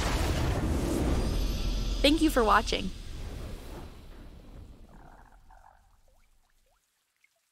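A triumphant victory fanfare swells with a shimmering chime, then slowly fades away.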